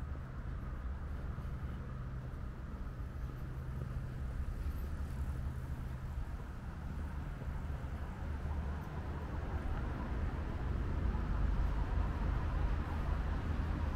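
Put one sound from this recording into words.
Wind blows outdoors with a low, steady rumble.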